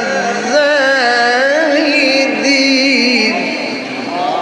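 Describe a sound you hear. A man chants in a long, wavering melodic voice through a microphone, with an echo.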